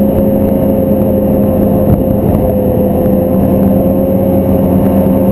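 A snowmobile engine drones loudly and steadily up close.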